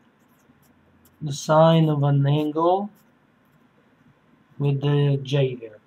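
A felt-tip marker squeaks softly across paper.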